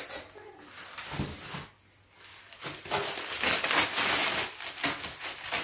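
Plastic and paper mailers rustle and crinkle.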